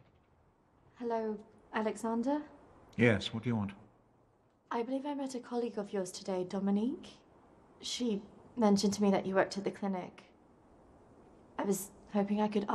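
A young woman speaks calmly at close range.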